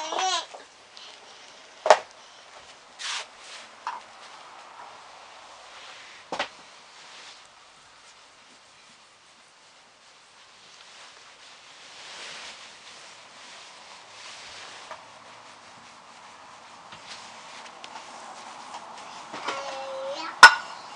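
Hands rub and press softly against skin.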